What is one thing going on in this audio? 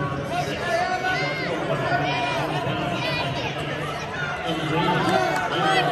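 A crowd murmurs and chatters throughout a large echoing arena.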